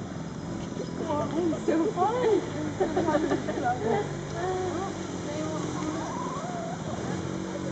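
Several people talk and call out nearby.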